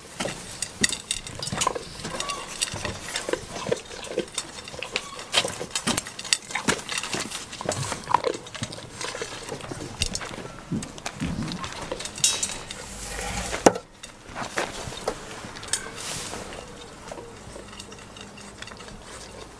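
A goat eats from a metal bucket with crunching and clinking.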